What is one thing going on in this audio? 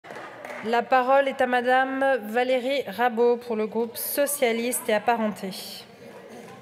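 A woman speaks calmly into a microphone in a large echoing hall.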